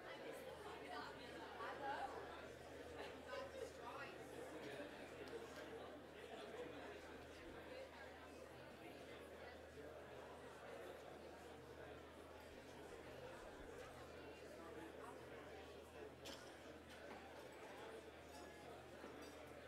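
A crowd of men and women chatters in a large hall.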